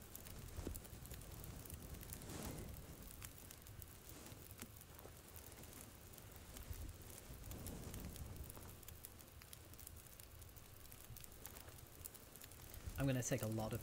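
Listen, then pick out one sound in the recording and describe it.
Flames hiss as water douses them.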